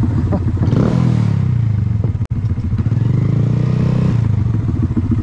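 A motorcycle engine revs up briefly and settles back.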